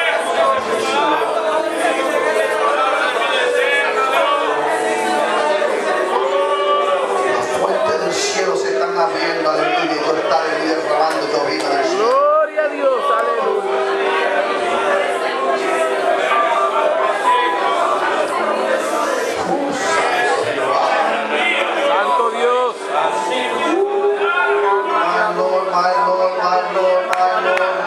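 A congregation sings and prays aloud together in an echoing hall.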